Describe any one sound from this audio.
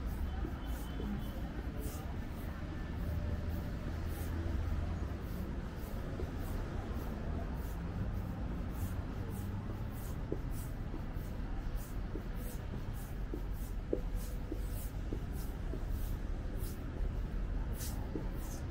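Footsteps tap steadily on pavement close by.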